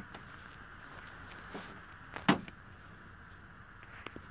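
Small plastic toys clatter as they are handled.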